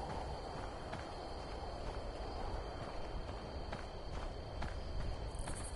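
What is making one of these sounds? A pistol fires a few quick shots.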